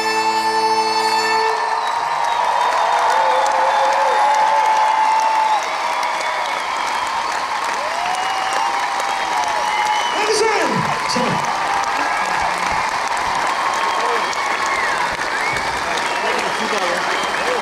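A large crowd cheers and whistles.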